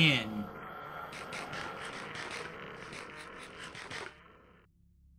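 Rapid crunching eating sounds repeat.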